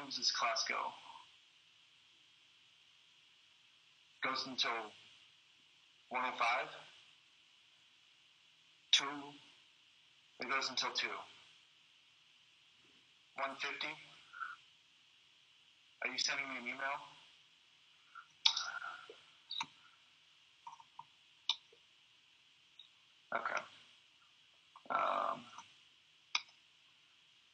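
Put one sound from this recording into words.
A man speaks in short, halting phrases over a microphone, as if lecturing on an online call.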